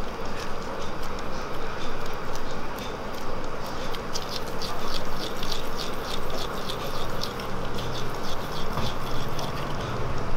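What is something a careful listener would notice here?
Rubber gloves squeak softly as hands roll soft dough.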